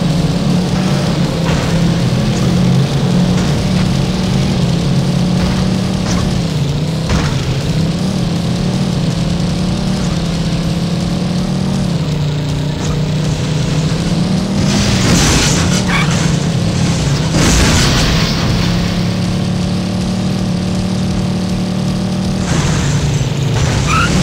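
A racing car engine roars steadily, its pitch rising and falling as it shifts gears.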